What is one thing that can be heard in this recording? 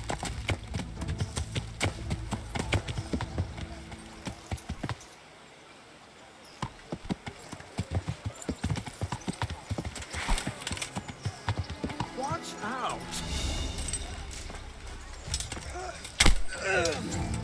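Horse hooves clop steadily on stone and dirt.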